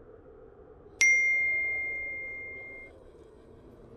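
A short bright notification chime rings once and fades out.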